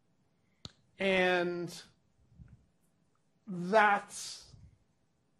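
A man speaks with animation, heard through a microphone.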